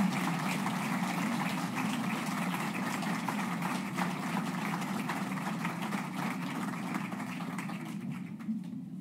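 An audience applauds outdoors.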